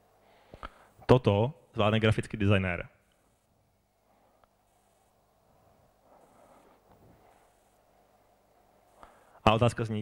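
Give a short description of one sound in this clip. A young man speaks into a microphone over loudspeakers in a room that echoes a little.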